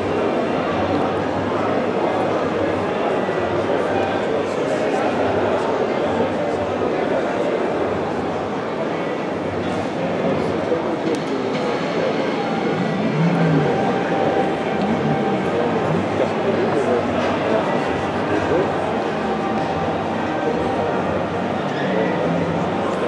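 A crowd of people chatters in a large, echoing hall.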